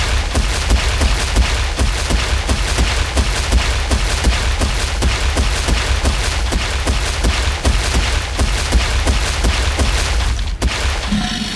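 Heavy footsteps of a large running animal thud rapidly and evenly.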